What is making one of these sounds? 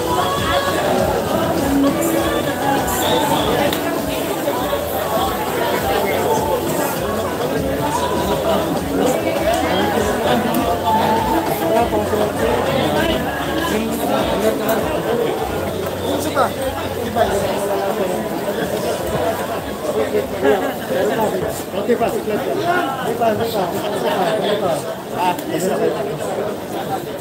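A crowd of men and women talk over one another close by.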